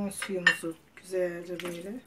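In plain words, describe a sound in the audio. A wooden spoon stirs food in a metal pot.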